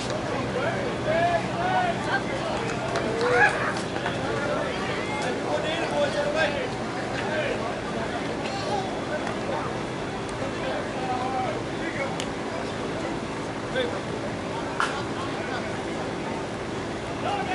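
Men's voices call out and chatter across an open outdoor field.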